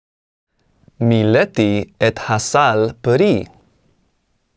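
A man speaks with animation, close to the microphone.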